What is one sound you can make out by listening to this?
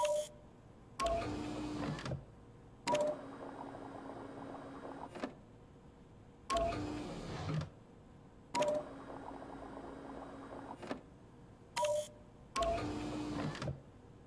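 Liquid gurgles and whooshes as it pumps between tubes.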